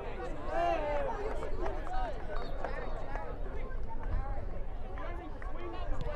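A crowd of spectators murmurs outdoors in the distance.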